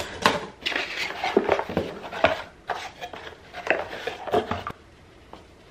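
Cardboard box flaps rustle and scrape close by.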